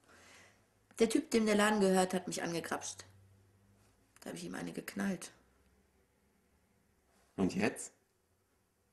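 A young woman speaks quietly and close by.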